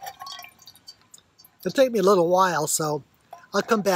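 Water pours into a metal mug.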